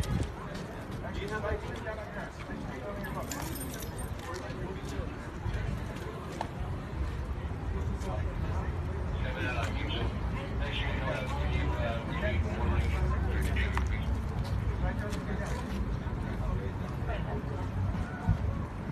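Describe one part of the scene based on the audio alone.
Several men talk and shout nearby outdoors.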